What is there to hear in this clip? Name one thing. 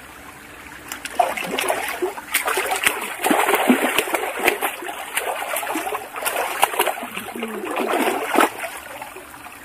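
Water splashes as a girl kicks and slides through a shallow stream.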